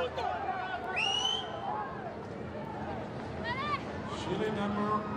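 A crowd of spectators cheers and whistles outdoors.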